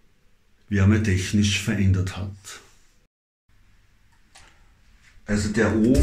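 An older man speaks close to the microphone, with emotion.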